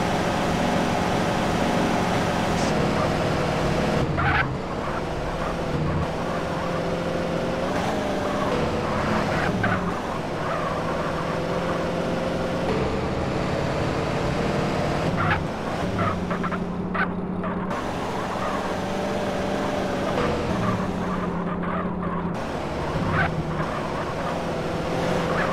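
A car engine roars at full throttle.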